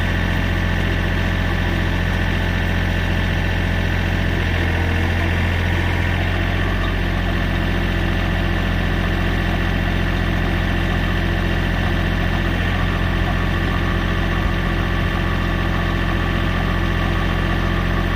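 A powered auger hums steadily as it drills into sandy soil.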